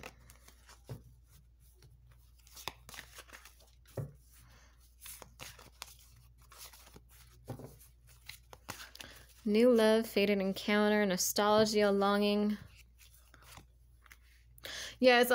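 Playing cards shuffle and rustle softly.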